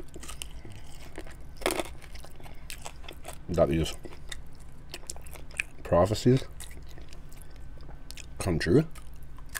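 A man bites and chews crispy chicken wings wetly, close to a microphone.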